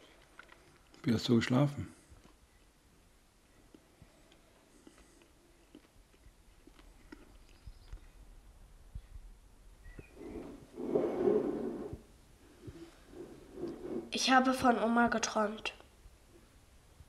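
An elderly man speaks quietly and briefly, close by.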